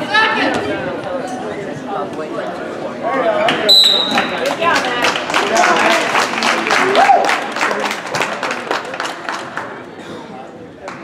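A crowd of spectators shouts and cheers in an indoor gym.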